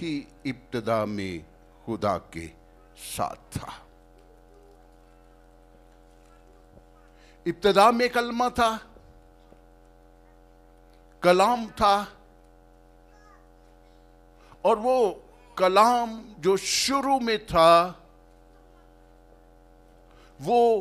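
An elderly man speaks with feeling into a microphone, with long pauses, in a hall with some echo.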